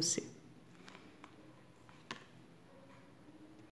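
A book is closed with a soft rustle of paper.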